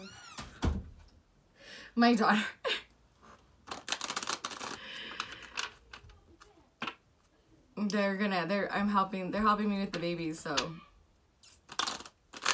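Playing cards shuffle and flick softly.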